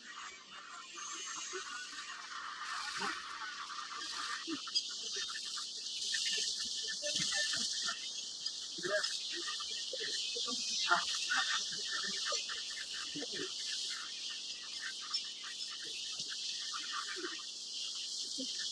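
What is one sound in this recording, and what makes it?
A herd of wildebeest grunts and calls.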